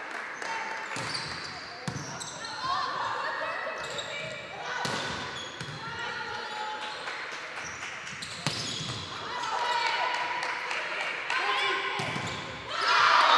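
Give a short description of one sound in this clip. A volleyball is struck with sharp slaps during a rally.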